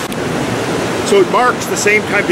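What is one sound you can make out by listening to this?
An elderly man speaks loudly and with animation close by.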